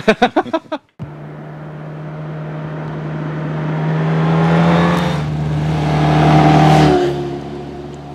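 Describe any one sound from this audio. A motorcycle engine roars as it approaches and speeds past.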